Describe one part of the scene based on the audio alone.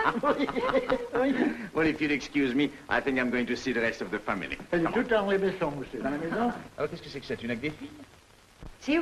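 A young girl talks with excitement up close.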